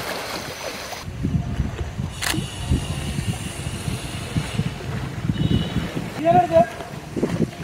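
Water sloshes gently as an elephant wades.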